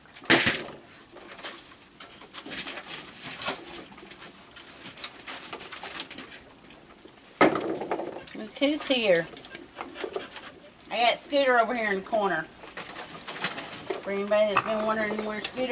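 Dry pet food crunches as animals eat.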